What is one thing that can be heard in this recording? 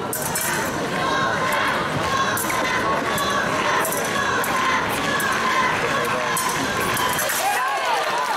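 Fencing blades clash and scrape together.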